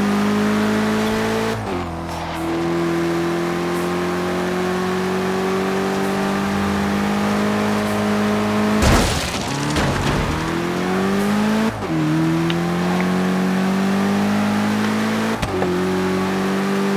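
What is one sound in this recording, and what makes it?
A car engine roars at high revs, dropping briefly with each gear change.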